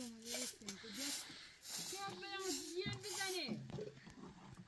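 A broom sweeps briskly across a rug.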